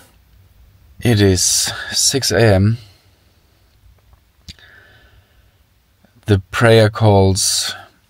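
A man speaks softly and close by.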